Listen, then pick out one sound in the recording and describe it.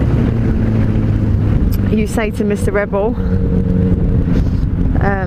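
Wind rushes loudly past on a moving motorcycle.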